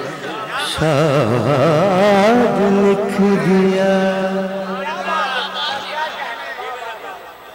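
A man chants loudly and tunefully into a microphone, heard through loudspeakers with echo.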